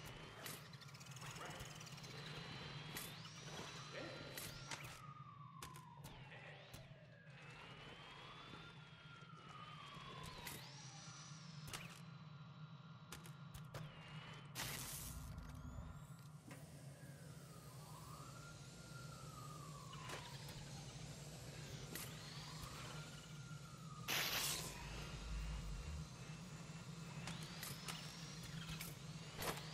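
A small toy car's electric motor whines, rising and falling in pitch as it speeds up and slows down.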